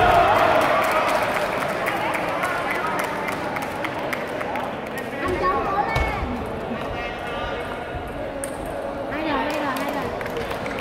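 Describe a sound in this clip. A table tennis ball clicks back and forth between paddles and table in a large echoing hall.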